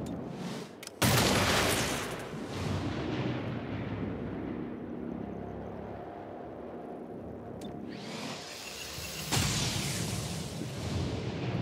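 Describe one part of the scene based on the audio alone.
Energy weapons fire in loud bursts.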